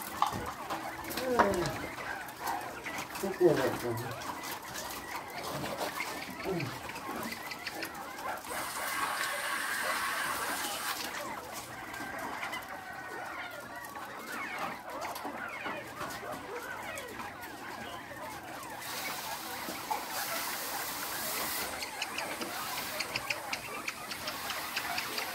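Many caged birds chirp and cheep steadily nearby.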